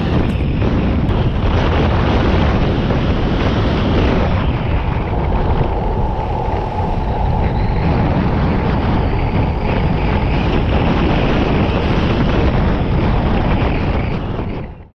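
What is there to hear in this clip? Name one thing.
Tyres hum and rumble on rough asphalt.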